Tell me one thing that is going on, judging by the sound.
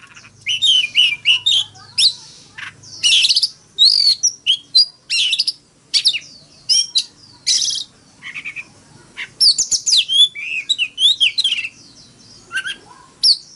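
A songbird sings loud, varied whistling phrases close by.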